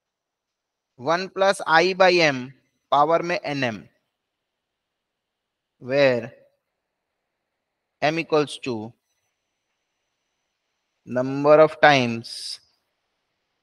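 A man speaks calmly through a microphone, explaining in short phrases with pauses.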